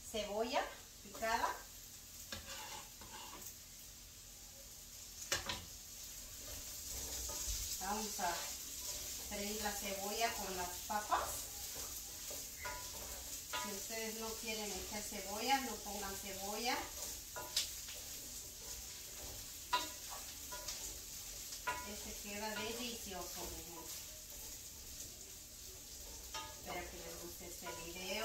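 Food sizzles in a frying pan.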